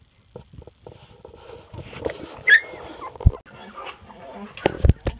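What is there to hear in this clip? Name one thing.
Puppies shuffle and scratch on a soft floor.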